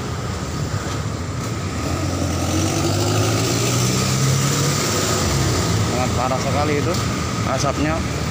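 Traffic rumbles past on a road, with motorbike engines droning.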